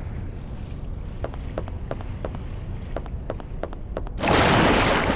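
Footsteps run on concrete.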